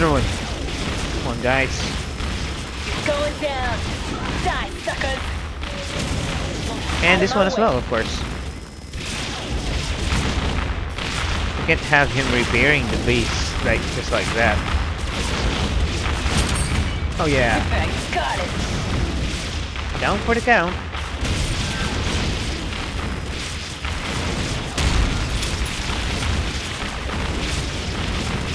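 Laser weapons zap repeatedly.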